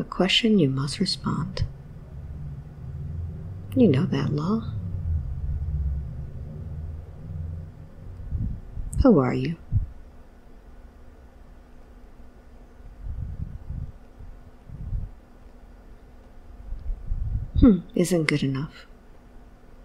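A woman speaks softly in short phrases, close to a microphone.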